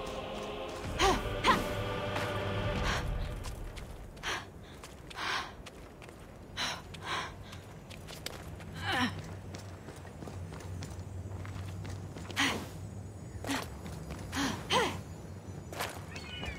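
Footsteps pad over rocky ground.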